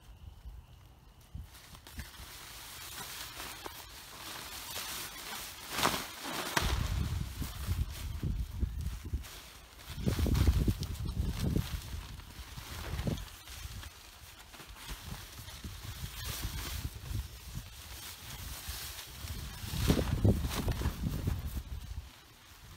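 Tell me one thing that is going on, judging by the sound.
Nylon tent fabric rustles and flaps as it is handled.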